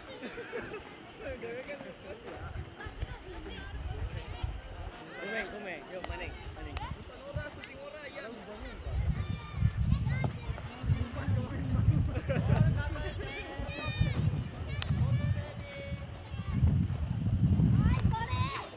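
Several young men talk and call out across an open outdoor field.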